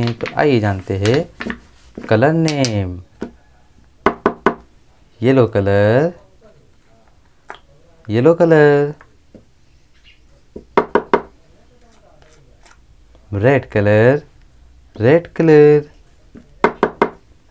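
Small plastic bottles tap and click against a hard surface.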